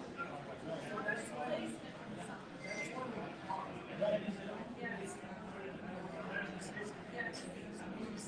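Several adult men talk casually over one another, heard from a distance in a room.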